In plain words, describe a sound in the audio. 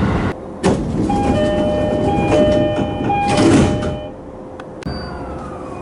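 Train doors slide shut with a thud.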